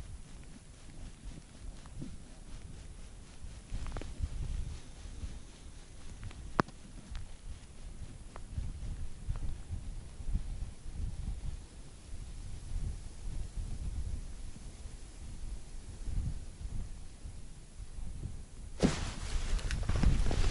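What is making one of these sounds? Wind rumbles and buffets across an open outdoor space.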